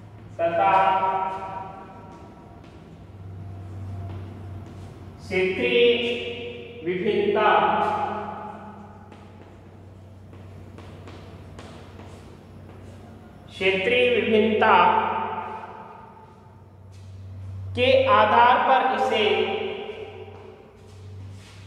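A middle-aged man speaks loudly and slowly, as if lecturing, in an echoing room.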